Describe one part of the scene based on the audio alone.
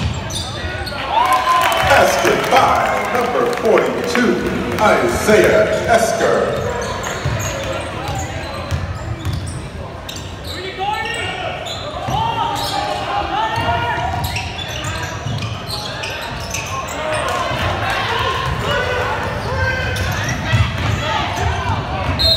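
A crowd in a large echoing gym cheers and shouts.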